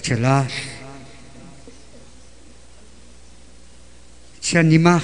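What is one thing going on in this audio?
An elderly man sings loudly into a microphone, heard through a loudspeaker.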